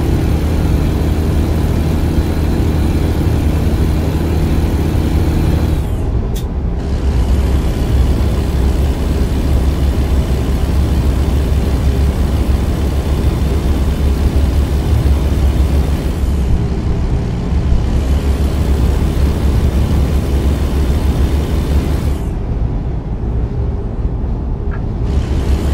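A truck engine drones steadily at speed.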